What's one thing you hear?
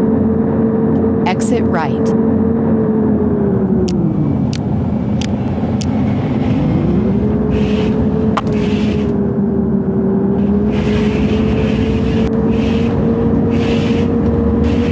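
Tyres roll on a road.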